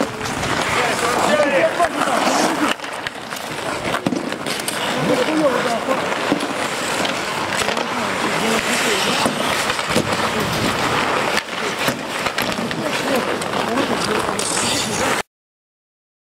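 Ice skates scrape and swish on ice.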